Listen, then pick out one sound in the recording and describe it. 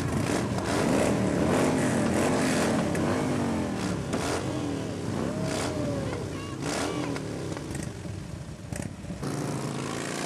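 Motorcycle engines rumble and rev nearby.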